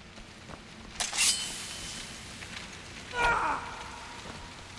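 A weapon strikes with a sharp metallic ring.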